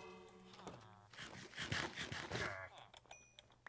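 Crunchy eating sounds play in quick bursts.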